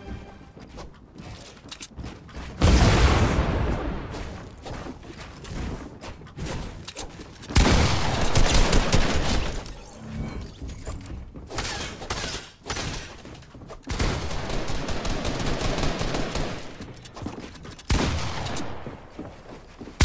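Wooden building pieces clatter into place in quick succession.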